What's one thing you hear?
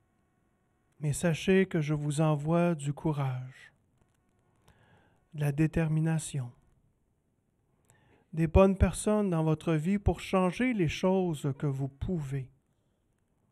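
A man speaks calmly into a microphone, in pauses.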